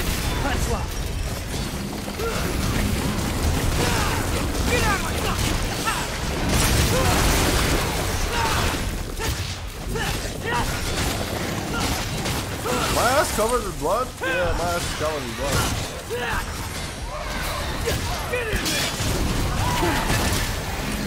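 Monsters screech and roar.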